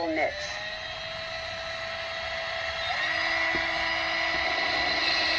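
A cordless drill whirs steadily, boring into a ceramic pot.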